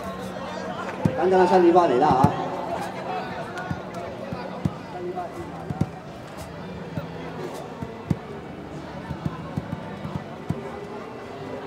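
A crowd claps along in scattered claps.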